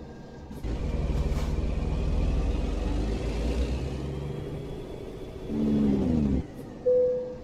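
A truck engine rumbles at low speed, then shuts off.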